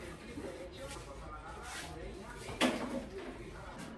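A cloth wipes a cabinet shelf with a soft rubbing sound.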